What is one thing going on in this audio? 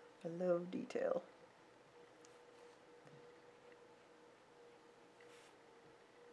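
A brush dabs softly on paper.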